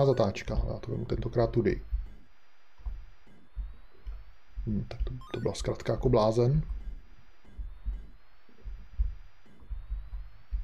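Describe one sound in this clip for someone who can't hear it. Video game sound effects beep and thump.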